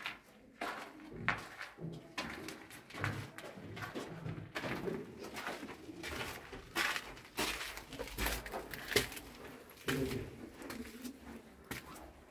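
Footsteps crunch on gravel and then scuff up stone steps.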